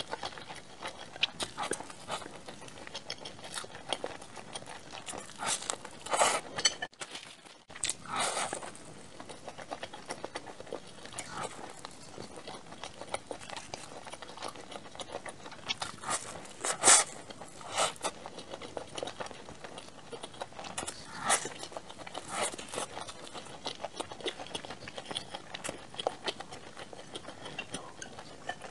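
A young woman chews crunchy food close to a microphone, with loud wet crunches and smacks.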